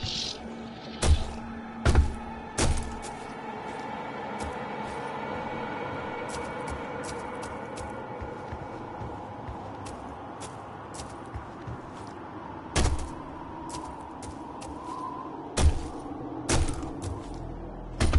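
Heavy footsteps thud and clank on a hard floor.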